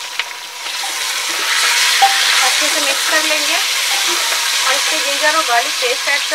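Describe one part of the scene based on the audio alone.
Meat sizzles in a hot pot.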